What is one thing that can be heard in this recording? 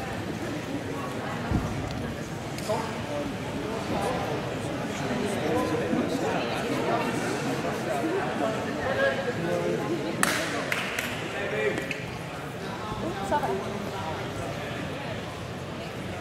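A crowd of men and women talks and calls out in a large echoing hall.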